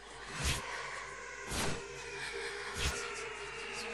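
A magical whoosh sweeps past several times.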